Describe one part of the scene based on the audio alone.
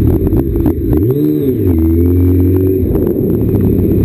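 A motorcycle engine revs up and settles nearby.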